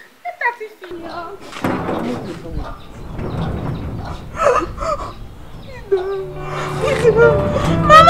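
A woman shouts angrily close by.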